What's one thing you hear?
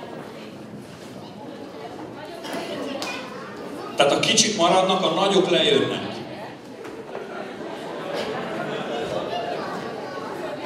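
An audience murmurs and chatters quietly.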